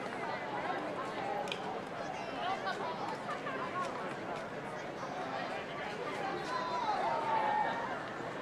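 Rugby players call out to each other across an open field.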